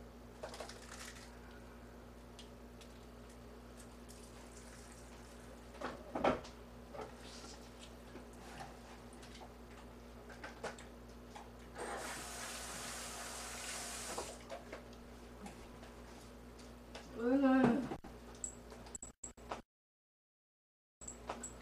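Utensils clink and clatter against dishes.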